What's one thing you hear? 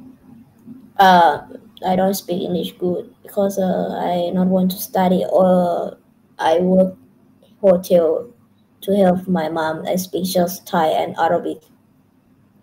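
A young woman speaks calmly over an online call, close to the microphone.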